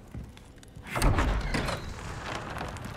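Heavy wooden doors creak and bang open.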